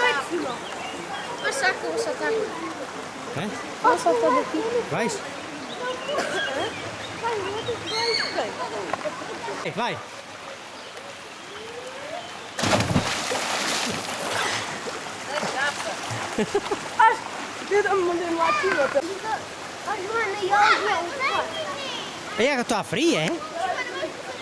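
Children shout and chatter nearby outdoors.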